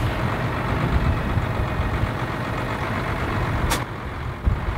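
Loose soil pours from a loader bucket with a rushing rumble.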